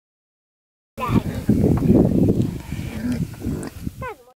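A pig snuffles and grunts close by.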